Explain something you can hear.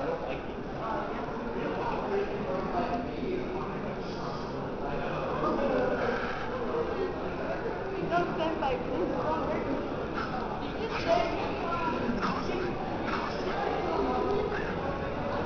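Many people chatter nearby indoors.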